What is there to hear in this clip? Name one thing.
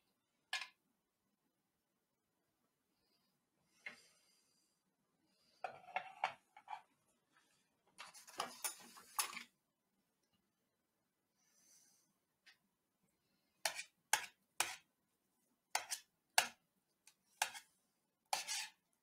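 A spoon scrapes and clinks against a metal tray.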